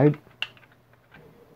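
A small plastic toy car door clicks as it swings open.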